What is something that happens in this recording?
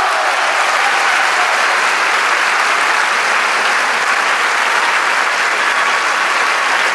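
A large audience applauds loudly and steadily in an echoing hall.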